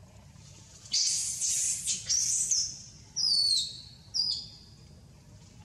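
A young monkey squeals shrilly several times, close by.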